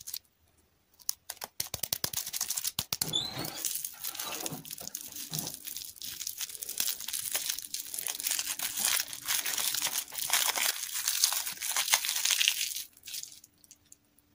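Plastic candy wrappers crinkle and rustle as fingers unwrap a lollipop, close up.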